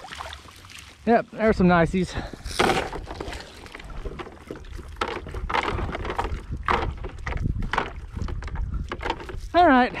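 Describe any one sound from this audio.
A wet net rustles and drips as it is pulled in by hand.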